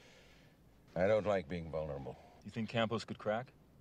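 A middle-aged man speaks close by, calmly.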